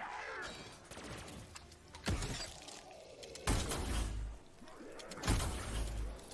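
A gun fires loud, booming blasts.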